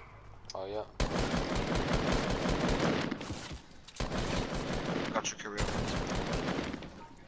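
Rapid gunfire rattles in fast bursts.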